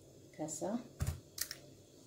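A spoon stirs liquid in a plastic bowl.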